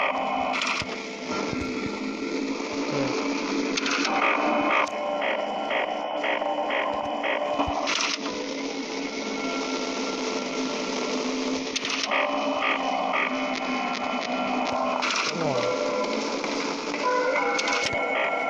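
An electric desk fan whirs.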